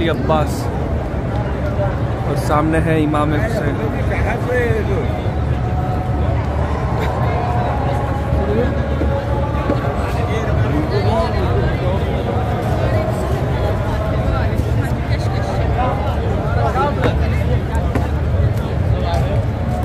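A large crowd murmurs and chatters all around, outdoors.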